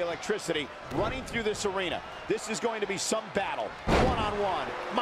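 A body slams onto a wrestling ring mat.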